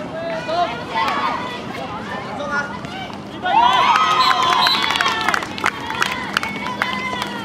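A crowd of young spectators cheers and shouts close by, swelling suddenly partway through.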